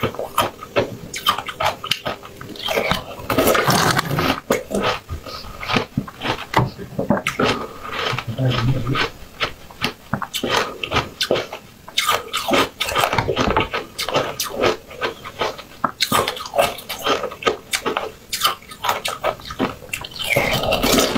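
A young woman bites and crunches on hard candy close to a microphone.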